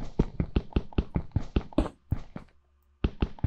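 Stone blocks crack in quick, regular knocks as they are broken.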